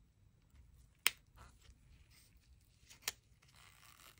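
A plastic strap clicks sharply as it is unfastened.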